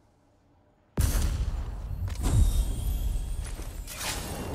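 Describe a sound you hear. A heavy chest lid creaks open with a deep rumble.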